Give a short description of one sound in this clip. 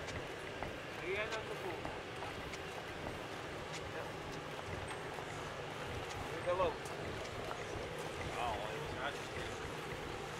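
A man talks in passing nearby, outdoors.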